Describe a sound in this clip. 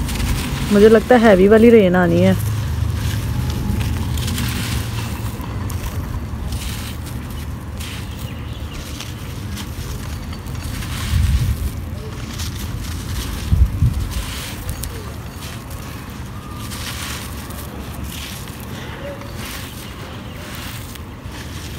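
Loose soil patters softly onto the ground.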